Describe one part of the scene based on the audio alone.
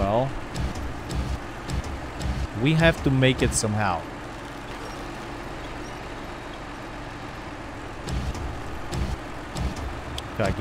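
A truck engine idles with a low rumble.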